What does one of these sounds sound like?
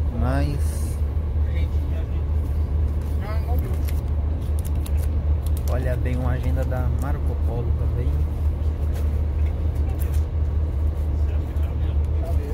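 A vehicle engine hums low and steady.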